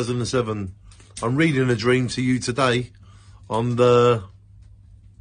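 A middle-aged man speaks with animation close to the microphone.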